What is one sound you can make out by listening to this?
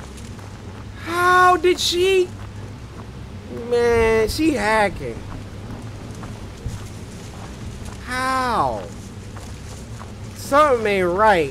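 A young man exclaims loudly and excitedly into a close microphone, in short bursts.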